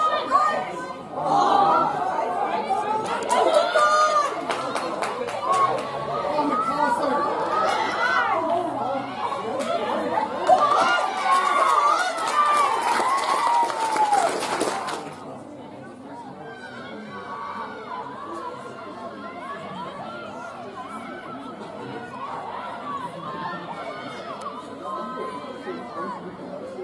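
Young women shout to one another from a distance outdoors.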